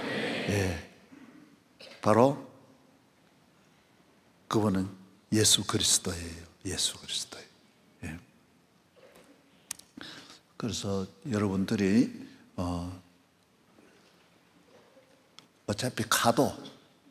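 A middle-aged man speaks with animation through a microphone, in bursts with pauses, in a large echoing hall.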